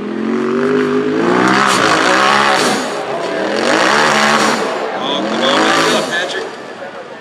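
A crowd of spectators shouts and screams in alarm nearby.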